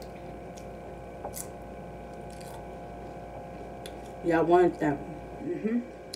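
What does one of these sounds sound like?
A woman bites and chews crunchy tortilla chips close to the microphone.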